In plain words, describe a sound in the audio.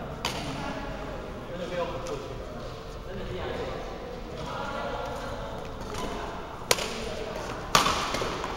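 Rackets hit a shuttlecock with sharp pops in a large echoing hall.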